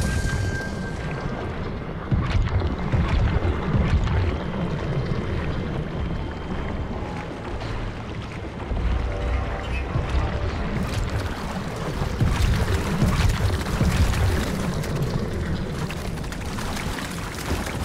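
Water sloshes and splashes as a swimmer moves through it.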